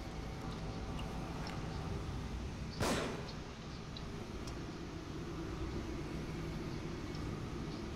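Gas flames roar steadily.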